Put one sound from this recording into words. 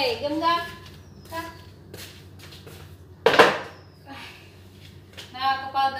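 A plastic stool scrapes and knocks on a hard floor.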